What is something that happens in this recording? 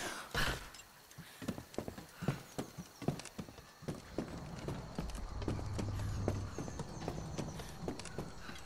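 Wooden rungs knock as someone climbs a ladder.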